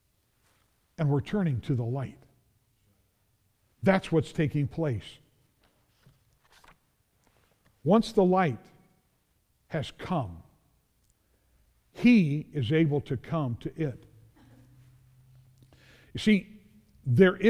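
An elderly man preaches into a microphone in bursts, with long pauses.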